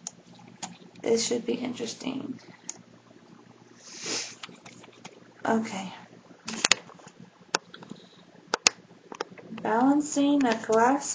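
A young woman talks casually close to a microphone.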